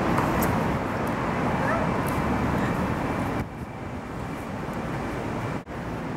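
High heels click on a concrete floor.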